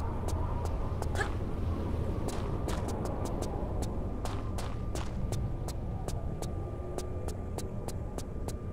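Footsteps run quickly across a hard floor with a slight echo.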